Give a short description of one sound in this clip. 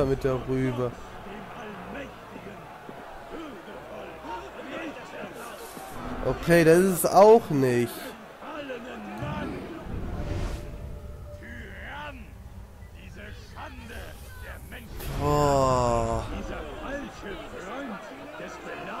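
A crowd of men shouts and murmurs excitedly.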